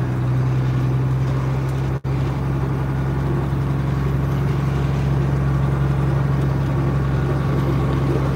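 Tyres crunch slowly over packed snow.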